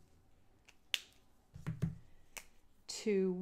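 A marker cap clicks into place.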